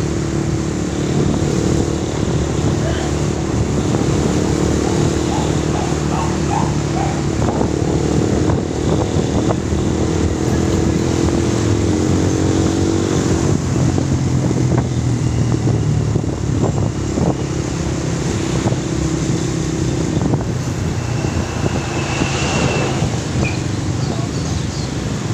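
Wind rushes past a moving vehicle.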